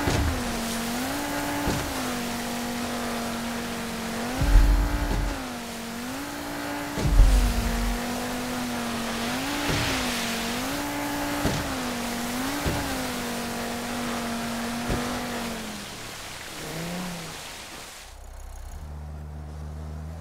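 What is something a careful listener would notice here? Water splashes and hisses against a speeding boat's hull.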